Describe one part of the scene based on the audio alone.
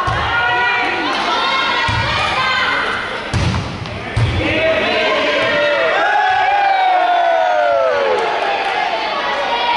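Young female players call out to each other.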